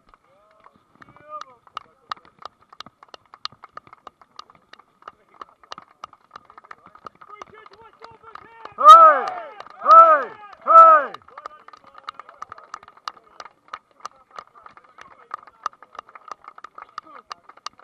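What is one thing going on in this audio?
Several men clap their hands steadily outdoors.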